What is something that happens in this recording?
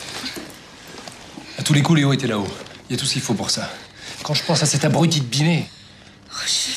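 A younger man speaks tensely up close.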